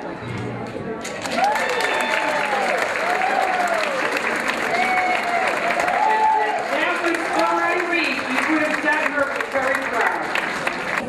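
An audience claps along in rhythm.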